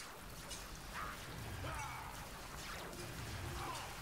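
A magic spell crackles and shimmers.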